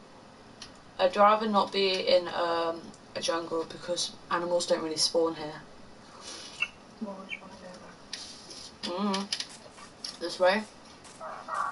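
A young person talks into a microphone.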